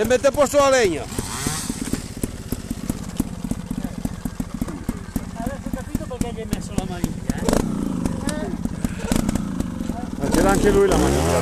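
A motorcycle engine idles with a low, steady rattle.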